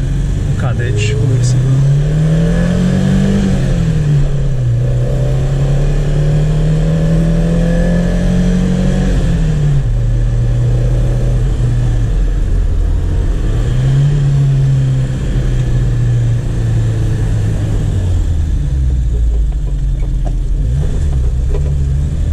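A car engine revs up and down through the gears.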